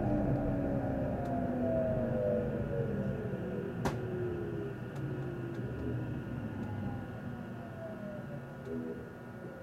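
A train rumbles and hums steadily as it slows into a station.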